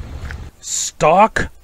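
A man yelps in a wobbly, cartoonish voice.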